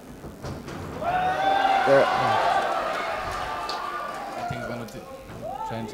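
A crowd cheers and shouts loudly around an indoor arena.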